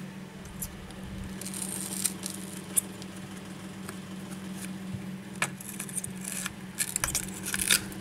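A metal tool scrapes along the edge of a phone.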